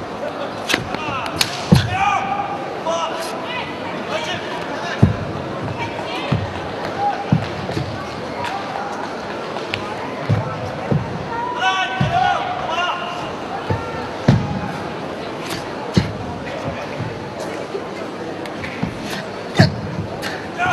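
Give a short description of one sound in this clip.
Feet stamp and thud on a padded mat.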